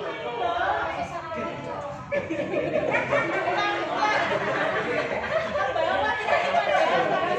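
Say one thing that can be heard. A group of young men and women chatter and call out nearby outdoors.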